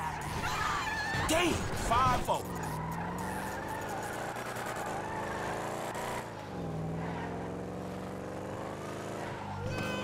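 A car engine revs and accelerates, shifting through gears.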